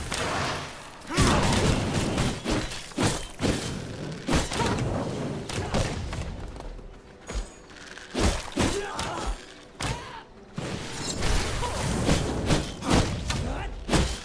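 Magic blasts crackle and boom in quick bursts.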